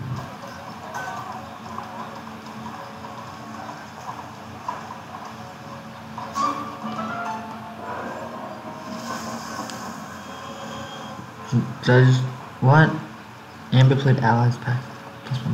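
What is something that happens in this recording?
Soft fantasy music plays.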